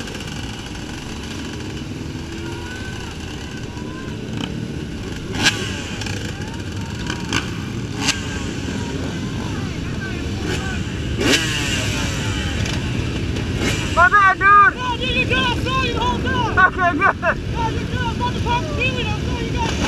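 Motorcycle engines rumble and drone steadily on a highway.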